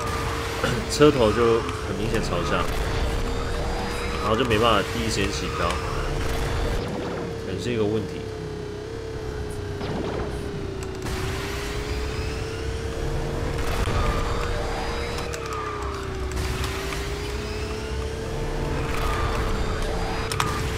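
A racing game's engine whines steadily.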